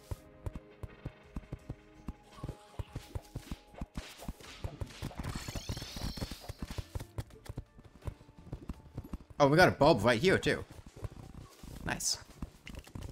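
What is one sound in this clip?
Short game sound effects tick and pop rapidly.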